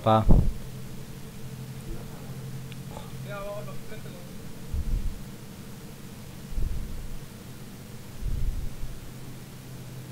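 A truck engine hums steadily at low speed.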